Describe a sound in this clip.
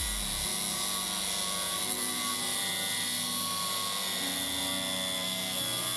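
An angle grinder whines loudly as it cuts through metal.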